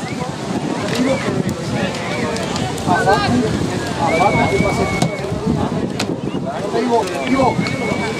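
Young men shout to each other as they celebrate.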